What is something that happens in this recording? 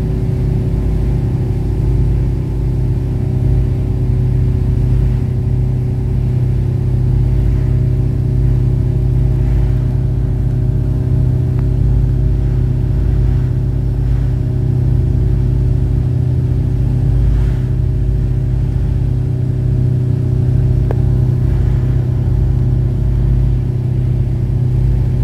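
A boat engine drones steadily and low.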